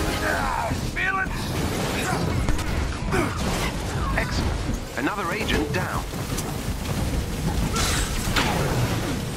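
Heavy blows land with loud thuds and crashes.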